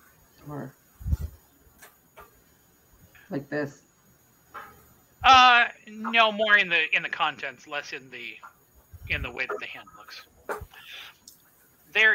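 Several adults talk with animation over an online call.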